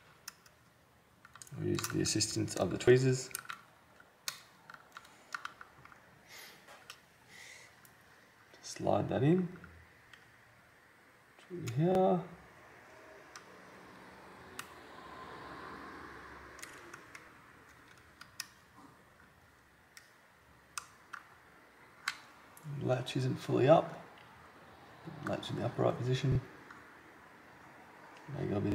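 A small tool clicks and scrapes against plastic parts.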